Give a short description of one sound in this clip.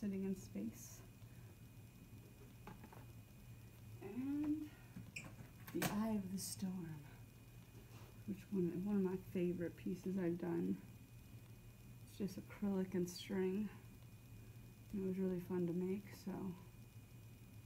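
A young woman talks calmly close by, in short phrases with pauses.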